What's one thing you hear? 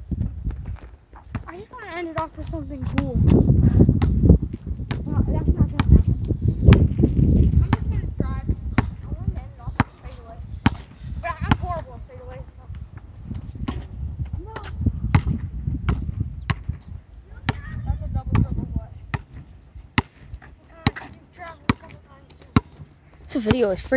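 A basketball bounces repeatedly on asphalt outdoors.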